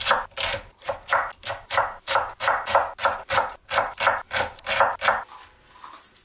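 A knife chops quickly on a wooden board.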